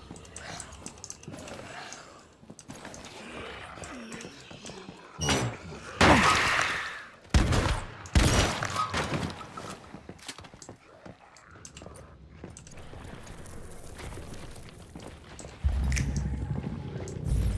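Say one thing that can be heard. Footsteps thud softly on a wooden floor.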